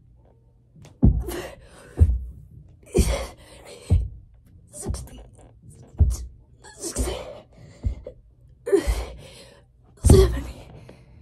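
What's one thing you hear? Thumps land on a floor again and again at a steady pace.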